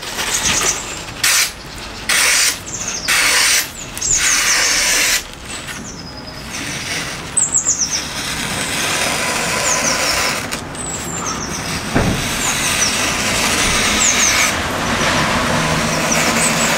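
A sharp knife slices through a sheet of paper with a crisp swishing sound.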